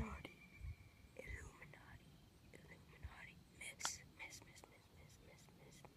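A putter taps a golf ball with a light click.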